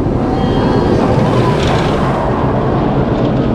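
A roller coaster train roars past close overhead, rattling along its wooden track.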